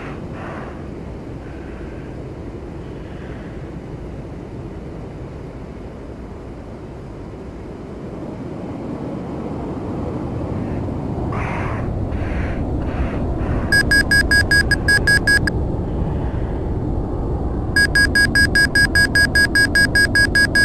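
A jet engine roars steadily from inside a cockpit, growing louder.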